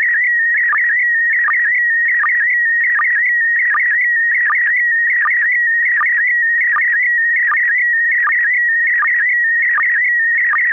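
A radio receiver gives out a steady high tone with a regular pulsing beat.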